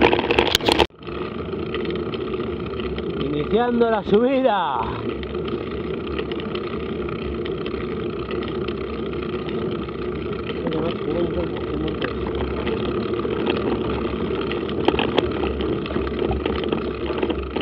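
Bicycle tyres roll quietly over a smooth paved road.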